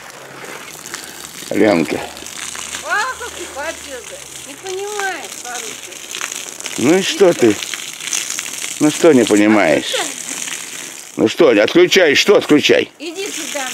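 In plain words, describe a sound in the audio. Water hisses steadily from a garden hose.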